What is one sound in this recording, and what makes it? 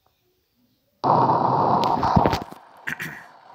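A deep rumbling roar bursts out loudly, then stops abruptly.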